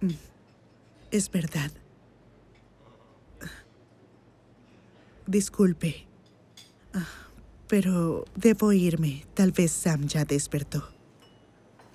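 A young woman speaks nearby, sounding uneasy.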